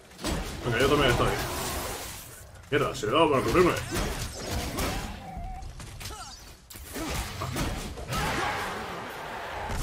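Blades strike and clash in a close fight.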